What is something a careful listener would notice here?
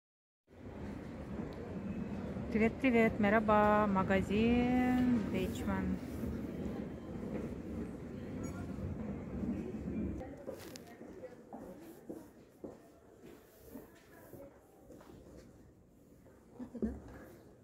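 Shoppers murmur faintly in a large indoor space.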